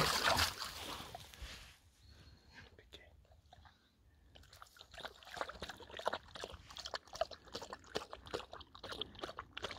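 A shallow stream trickles over stones.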